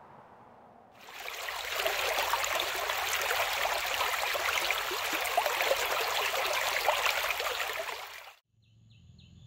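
Shallow water rushes and splashes over stones.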